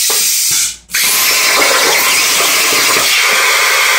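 A plasma cutter hisses and roars loudly as it cuts metal.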